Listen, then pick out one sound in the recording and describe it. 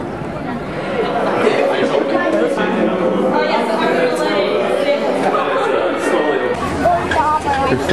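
Riders scream and cheer on a thrill ride.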